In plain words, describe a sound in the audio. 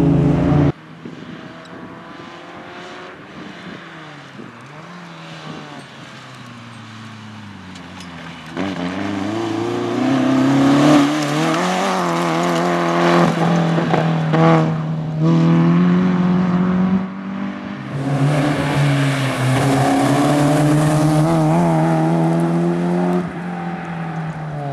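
A rally car engine revs hard and roars as the car speeds past.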